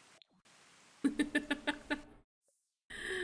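A young woman laughs into a close microphone.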